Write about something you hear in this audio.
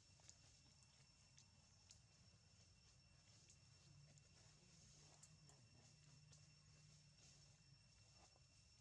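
A monkey chews food with soft clicking sounds.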